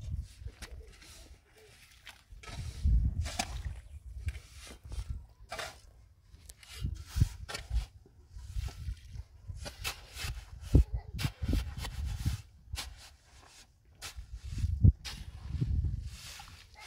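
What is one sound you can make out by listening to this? Shovels scrape and scoop through wet cement and gravel, outdoors.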